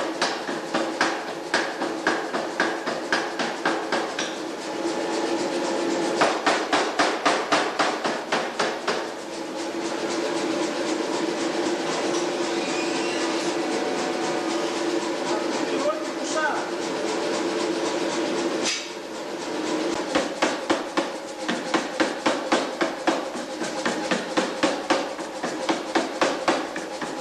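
A power hammer pounds hot metal in rapid, heavy blows.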